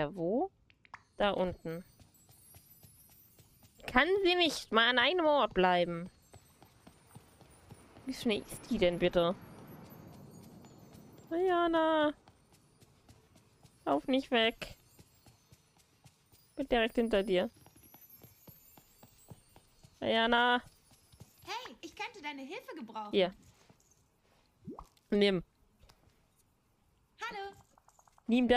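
A young woman talks animatedly into a close microphone, in bursts with pauses.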